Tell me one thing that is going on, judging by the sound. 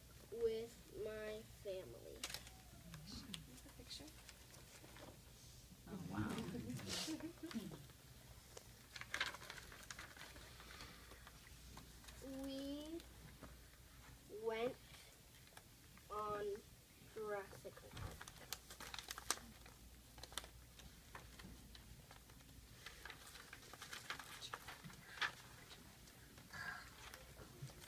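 A young boy reads aloud nearby.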